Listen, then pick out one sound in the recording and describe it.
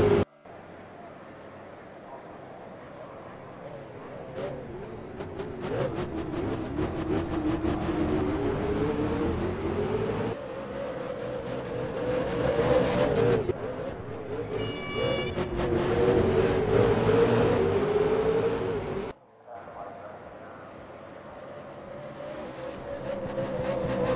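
A V8 race car engine roars at racing speed, rising and falling through the gears.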